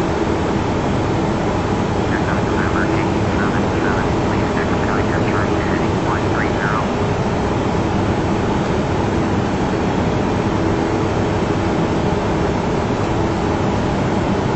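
Jet engines and rushing air roar steadily.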